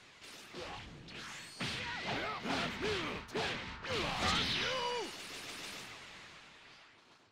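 Energy blasts fire with sharp whooshing bursts.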